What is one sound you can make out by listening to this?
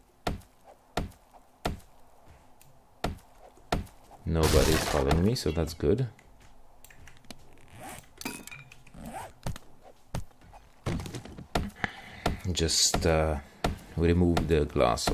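A stone axe knocks repeatedly against wooden boards.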